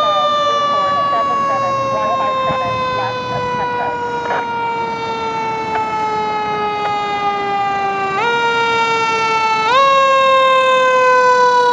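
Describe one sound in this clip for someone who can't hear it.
A fire truck's engine rumbles as the truck drives closer.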